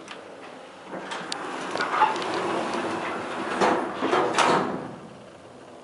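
An elevator hums as it moves.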